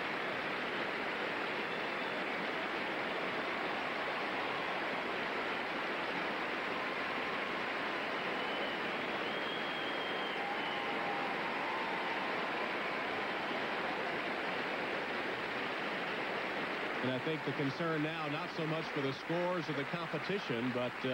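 A large crowd applauds and cheers in a big echoing arena.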